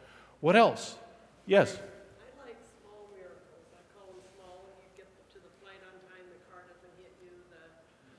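An elderly man speaks calmly, slightly echoing in a large room.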